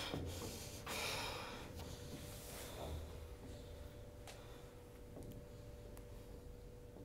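Footsteps scuff and tap on a hard floor in a quiet room.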